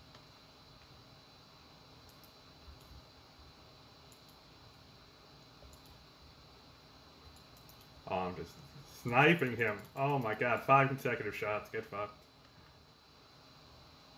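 Keyboard keys click quietly.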